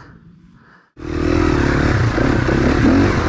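A motorcycle engine runs loudly close by, revving as the bike rides along.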